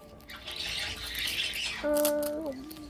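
A plastic wrapper crinkles close by.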